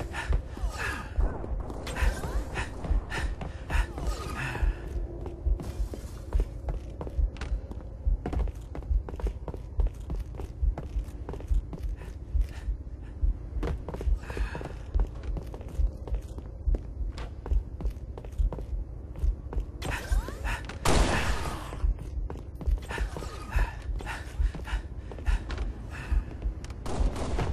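Heavy footsteps thud at a steady walking pace on a hard floor.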